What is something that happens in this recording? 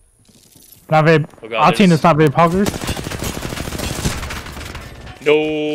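Rapid gunfire rattles in a video game.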